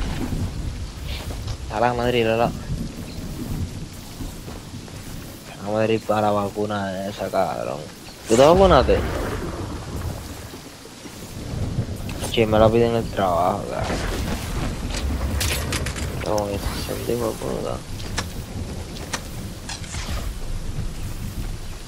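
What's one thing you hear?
Footsteps run quickly over grass and wooden boards.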